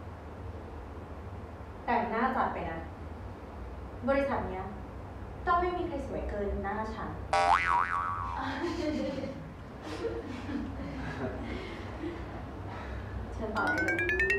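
A young woman speaks sharply and teasingly, close by.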